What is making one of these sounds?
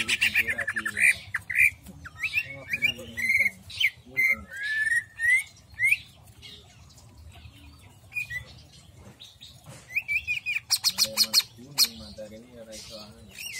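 A small bird sings close by in loud, varied chirps, whistles and trills.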